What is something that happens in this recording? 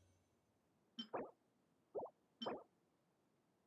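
Soft chiming clicks sound as menu items are selected.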